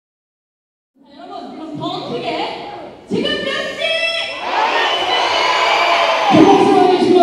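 A young man sings through a microphone on a loudspeaker.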